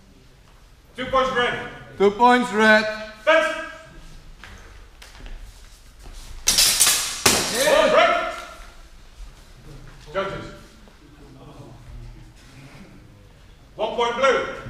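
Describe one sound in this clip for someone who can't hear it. A man calls out commands loudly in a large echoing hall.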